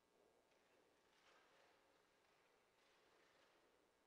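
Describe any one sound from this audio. Footsteps echo faintly through a large, quiet hall.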